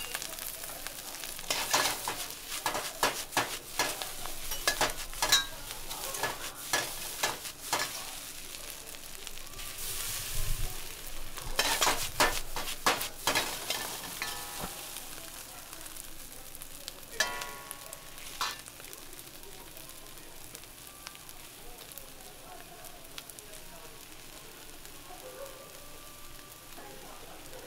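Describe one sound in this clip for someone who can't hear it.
Rice sizzles in a hot wok.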